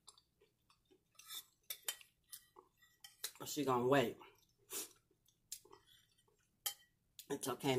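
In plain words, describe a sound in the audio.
A spoon scrapes and clinks against a bowl.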